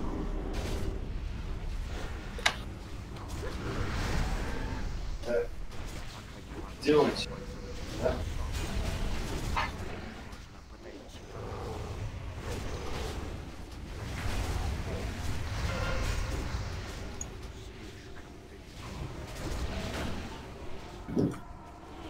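Spell effects whoosh and crackle during a fantasy battle.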